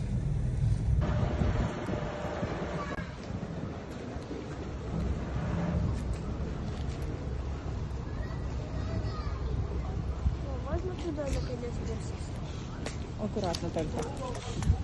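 Ice crunches and scrapes against a boat's hull.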